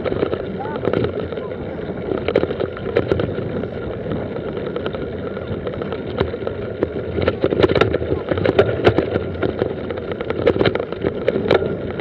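A mountain bike rattles and clatters over bumpy grass and dirt.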